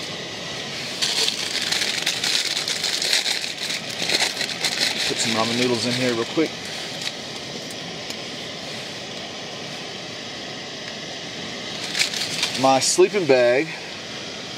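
Nylon fabric rustles and crinkles as a man moves about.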